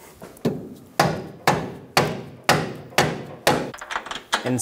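A hammer strikes metal in steady, ringing blows.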